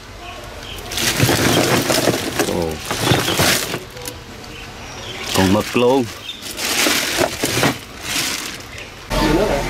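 Ice cubes crunch and clatter.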